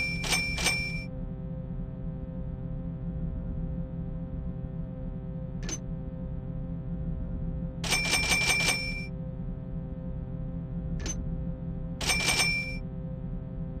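A short metallic jingle sounds with each purchase.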